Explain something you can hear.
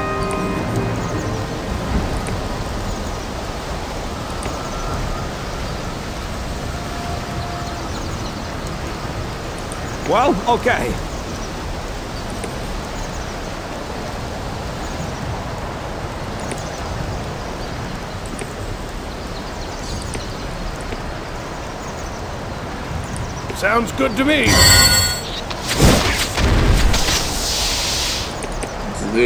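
A stream flows and gurgles steadily.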